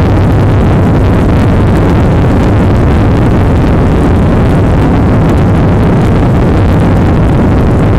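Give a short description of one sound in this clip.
Jet engines roar loudly and steadily from inside an airliner cabin.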